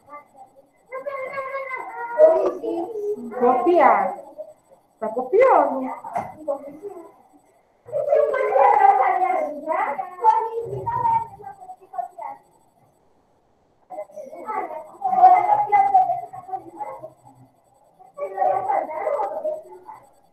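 A woman speaks calmly through a computer microphone, in bursts with pauses.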